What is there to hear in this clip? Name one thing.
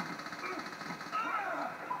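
Handgun shots from a video game play through a television speaker.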